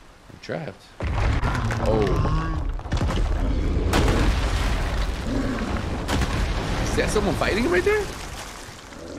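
Large rocks crash and tumble down with a heavy rumble.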